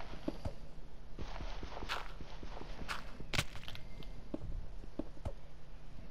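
Footsteps crunch on gravel and stone.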